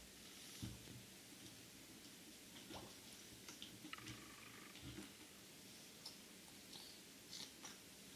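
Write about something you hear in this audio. Water sloshes and bubbles, muffled as if heard underwater.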